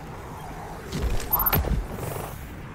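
A gun fires with sharp loud bangs.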